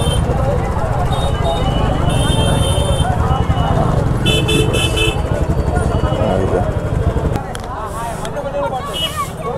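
A crowd chatters all around outdoors.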